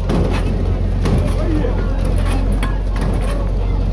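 Men bang and rattle a metal gate.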